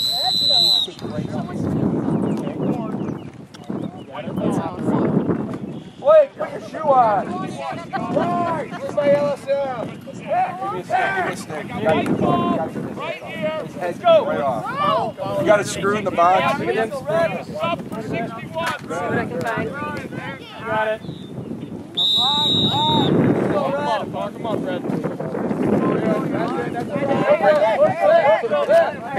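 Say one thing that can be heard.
Men and boys shout and cheer from the sidelines, outdoors.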